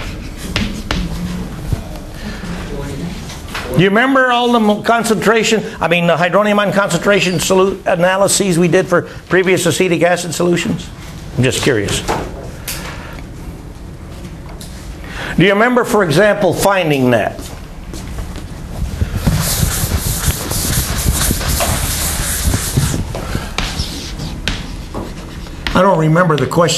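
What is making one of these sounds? Chalk taps and scrapes on a chalkboard.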